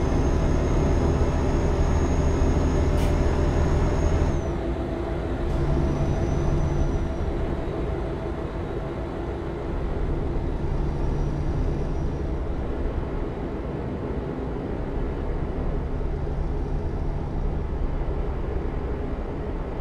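A diesel truck engine drones while cruising.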